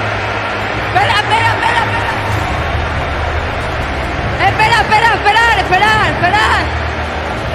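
A young woman shouts and sings joyfully into a microphone.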